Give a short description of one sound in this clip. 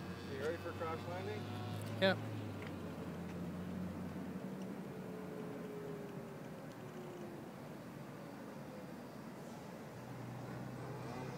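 A small aircraft drones faintly far overhead.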